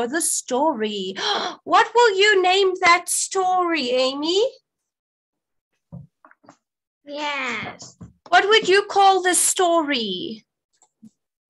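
A woman speaks brightly and with animation over an online call.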